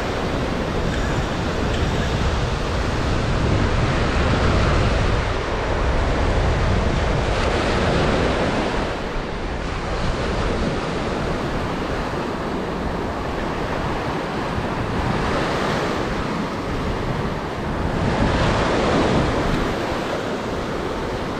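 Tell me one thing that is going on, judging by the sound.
Wind rumbles across the shore.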